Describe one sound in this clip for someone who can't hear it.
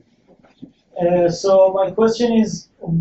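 A man speaks loudly and clearly through a microphone.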